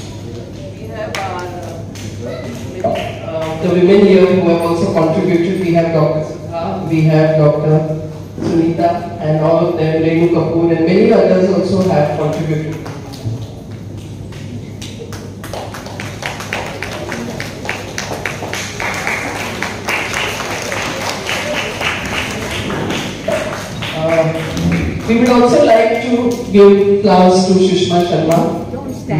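A middle-aged woman speaks steadily into a microphone over a loudspeaker.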